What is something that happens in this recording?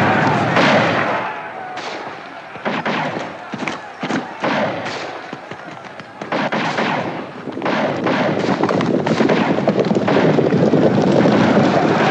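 A horse's hooves thud on dry ground.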